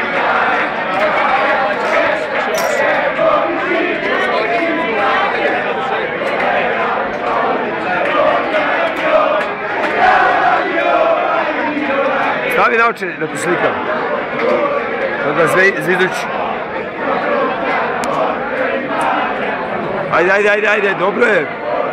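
A dense crowd chatters loudly outdoors, with many voices overlapping.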